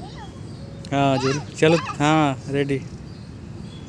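A young child calls out nearby with excitement.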